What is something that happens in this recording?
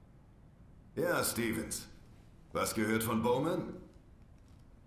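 A man speaks quietly on a phone, close by.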